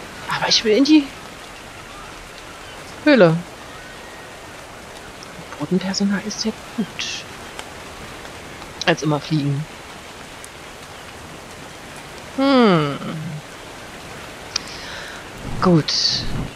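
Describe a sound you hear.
A large bird screeches again and again in sweeping downward cries.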